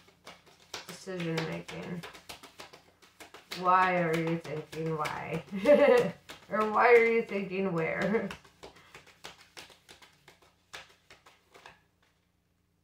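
Playing cards riffle and flick as they are shuffled.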